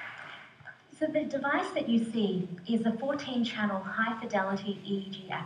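A man speaks calmly, heard through a loudspeaker in a large room.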